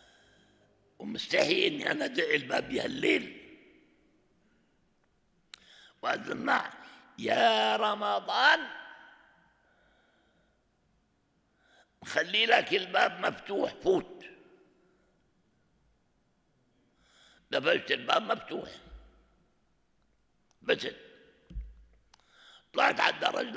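An elderly man speaks calmly into a microphone in bursts, with pauses between phrases.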